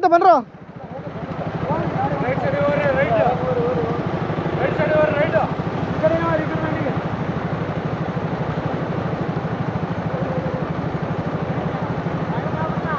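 A motorcycle engine idles with a steady close throb.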